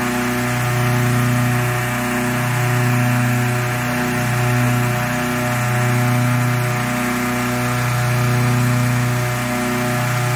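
A petrol-engine inflator fan drones, blowing air into a hot-air balloon envelope.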